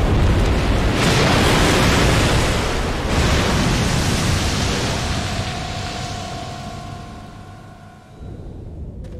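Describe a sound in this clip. Water splashes and roars loudly.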